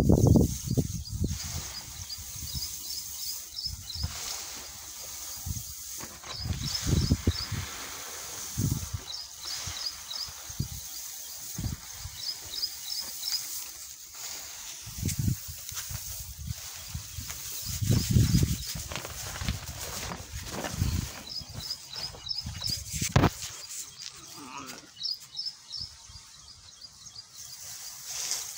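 Dry grain rustles and shifts under hands.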